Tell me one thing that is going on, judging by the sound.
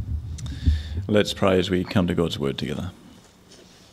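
A man speaks into a microphone, heard through a loudspeaker in an echoing hall.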